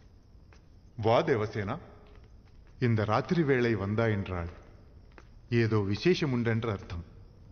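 A man speaks calmly and with a deep voice.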